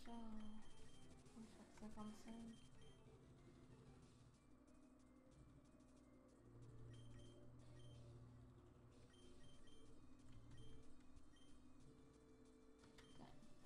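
A video game menu beeps with short electronic blips as the cursor moves.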